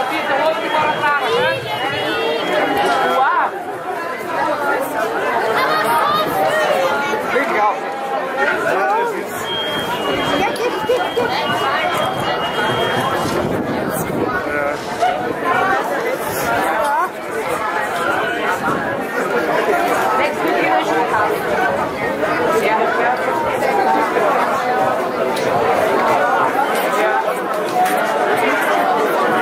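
A crowd of men talks and calls out outdoors.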